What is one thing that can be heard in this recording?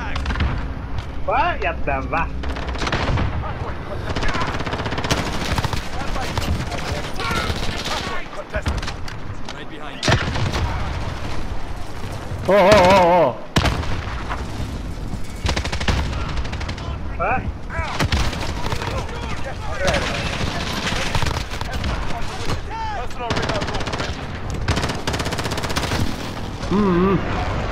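Rapid bursts of automatic rifle fire crack close by.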